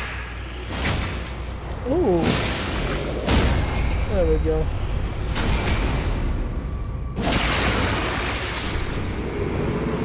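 Heavy blows crash in loud bursts.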